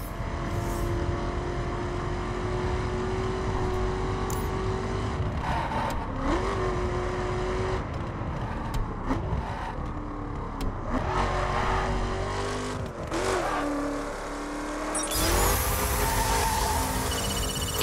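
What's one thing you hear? A car engine hums and revs, rising and falling in pitch as the car speeds up and slows down.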